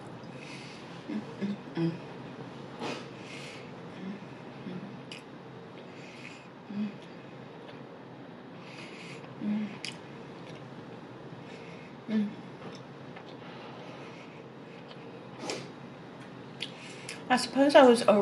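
A woman chews food close to a microphone with wet smacking sounds.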